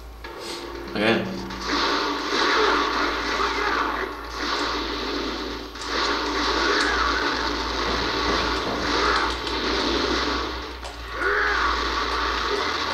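Video game combat sounds of blows and impacts clash.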